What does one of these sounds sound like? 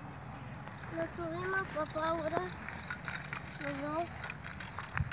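A young boy talks quietly to a horse.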